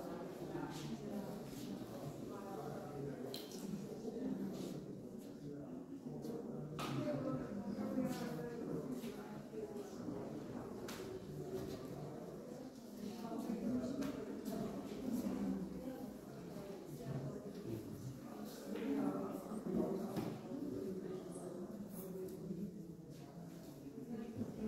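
Soft clicks and taps sound now and then.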